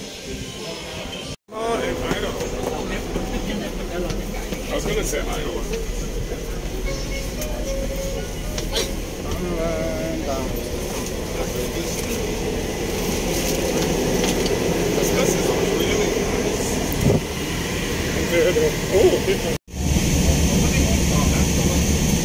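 A bus engine hums steadily at idle.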